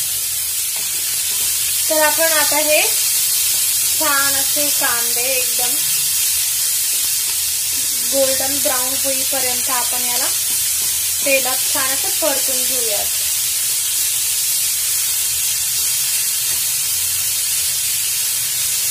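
Onions sizzle steadily in a hot pan.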